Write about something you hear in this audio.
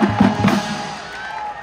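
A marching band's drums pound loudly outdoors.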